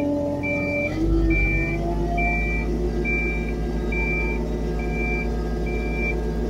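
An excavator engine revs up and stays louder.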